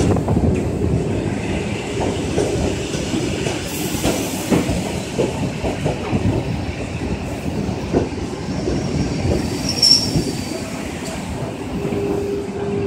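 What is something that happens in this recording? An electric commuter train rolls past close by with a low rumble.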